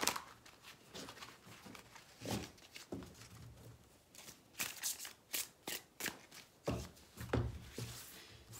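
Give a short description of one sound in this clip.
Cards shuffle and slap softly in a person's hands.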